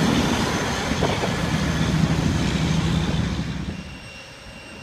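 A dump truck rumbles past on the road.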